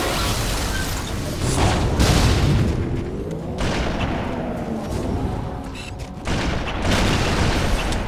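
An energy weapon crackles and fizzes.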